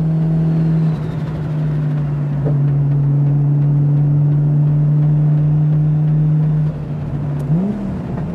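A car engine briefly drops in pitch as gears change.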